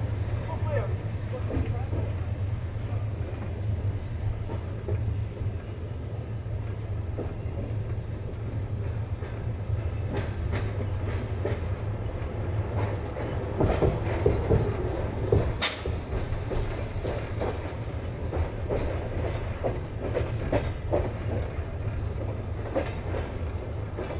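Wheels click and clack over rail joints.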